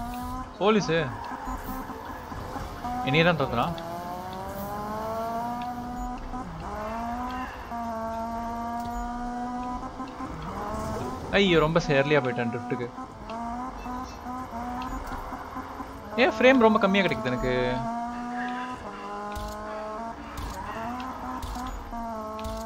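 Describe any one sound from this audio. A car engine revs hard and climbs through the gears.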